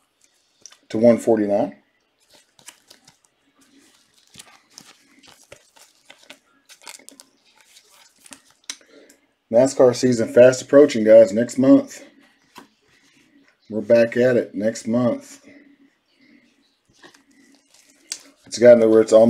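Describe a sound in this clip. Trading cards rustle and click in gloved hands.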